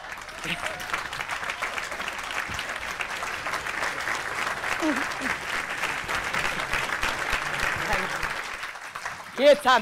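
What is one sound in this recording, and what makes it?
A large audience claps.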